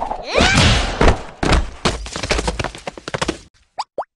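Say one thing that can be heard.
A heavy body lands with a thud.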